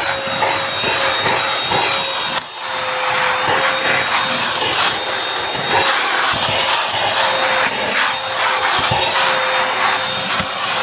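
A vacuum nozzle scrapes and bumps against carpet.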